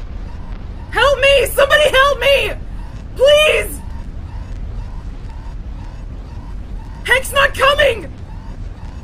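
A young man exclaims loudly into a close microphone in short bursts.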